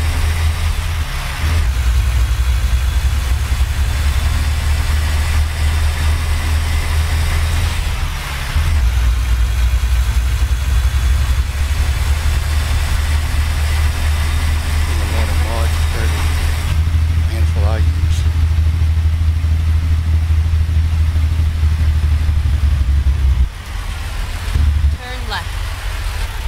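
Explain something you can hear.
A truck engine drones steadily with a deep rumble.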